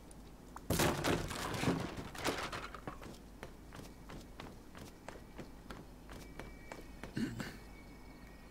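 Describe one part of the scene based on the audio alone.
Footsteps crunch over dry grass and dirt.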